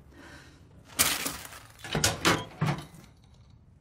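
Plastic snack packets rustle and crinkle.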